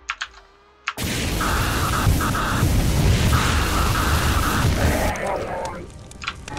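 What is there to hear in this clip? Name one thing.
A flame weapon roars as it fires in a loud burst.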